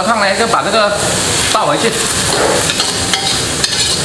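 Food is tipped into a wok with a rustling splash.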